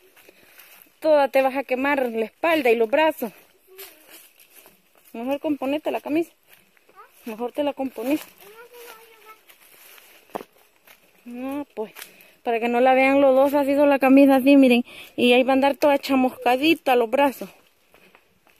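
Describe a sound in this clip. A young girl talks and calls out nearby, outdoors.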